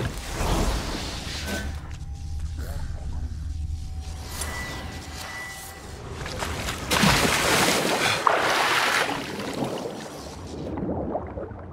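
Water sloshes and churns steadily.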